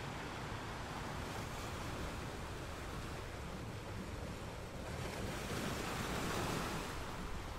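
Surf washes and hisses over rocks.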